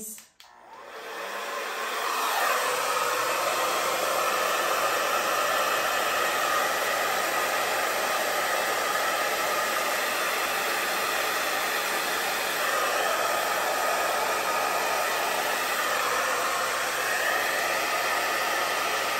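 A heat gun blows with a steady, loud whoosh.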